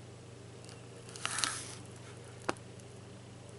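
A paper page rustles and crinkles briefly.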